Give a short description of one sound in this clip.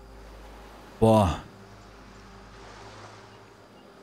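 Gentle waves wash against a rocky shore.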